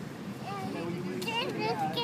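A young girl laughs.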